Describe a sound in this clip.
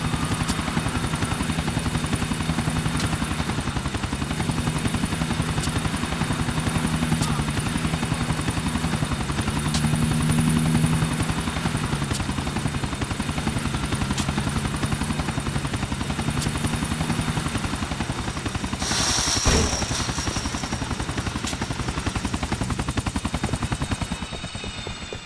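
Helicopter rotor blades thump loudly and steadily.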